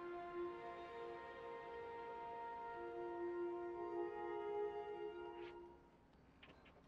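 Gentle music plays.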